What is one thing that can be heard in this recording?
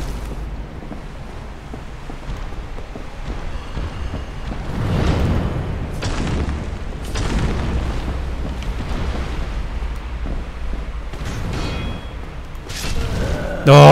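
Heavy thuds and crashes boom as a huge creature stomps and strikes.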